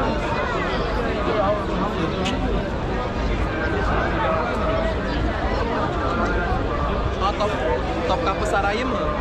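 A large crowd of men and women chatters all around outdoors.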